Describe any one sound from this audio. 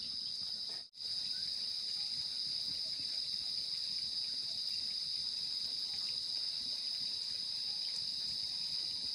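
Chopsticks tap against a bowl.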